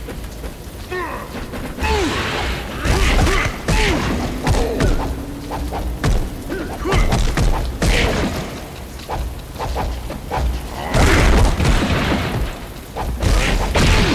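A game character grunts and shouts with each blow.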